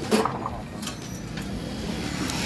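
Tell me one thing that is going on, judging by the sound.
Metal bars clank and rattle.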